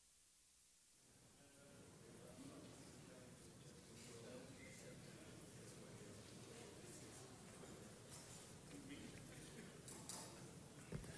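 Several men and women murmur and chat quietly in a large echoing hall.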